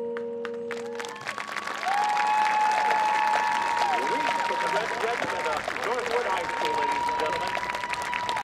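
Drums and percussion play along with a marching band.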